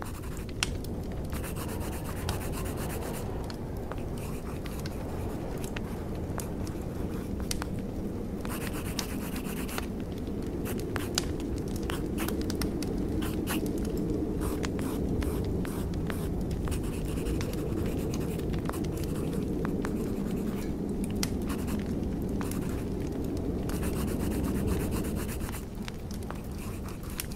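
Fires crackle and pop in braziers nearby.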